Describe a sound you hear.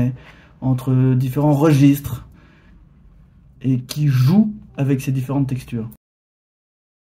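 A young man speaks calmly and close to a microphone, as if in an online call.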